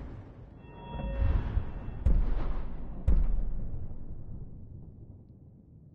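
A deep whooshing swell rises and slowly fades.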